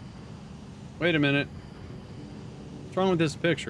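A middle-aged man speaks briefly into a close microphone.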